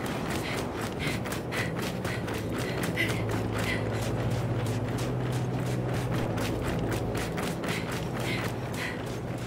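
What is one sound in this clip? Heavy boots thud rapidly on the ground as a soldier runs.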